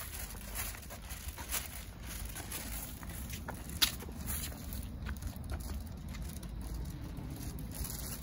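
Shoes scuff and tap on pavement in steady footsteps.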